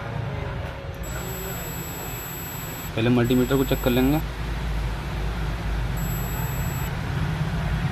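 A multimeter beeps with a high, steady tone.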